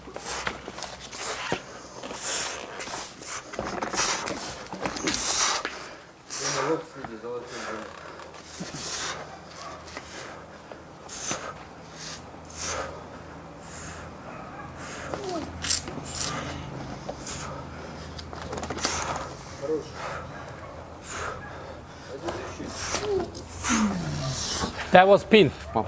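A man grunts and groans close by.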